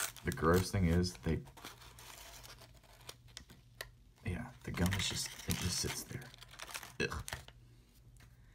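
A wax paper wrapper crinkles and tears as it is pulled open.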